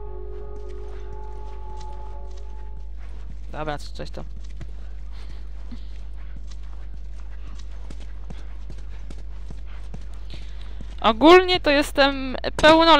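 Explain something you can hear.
Footsteps tread lightly on a hard floor.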